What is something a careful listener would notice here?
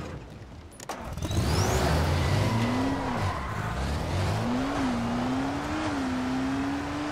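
A buggy engine revs and drives along.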